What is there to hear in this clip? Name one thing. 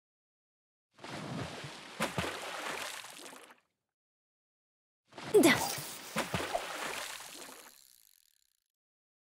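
A fishing line whirs as a cast is made over water.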